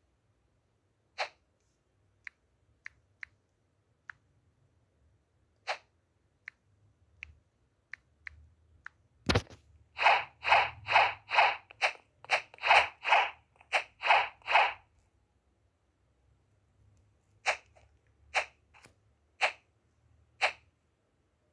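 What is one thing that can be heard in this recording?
Short whooshing video game effects play in quick bursts.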